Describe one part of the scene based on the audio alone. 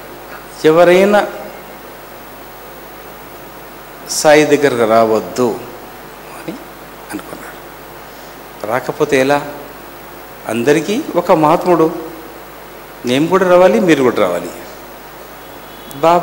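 A middle-aged man speaks slowly into a microphone, in short phrases with pauses.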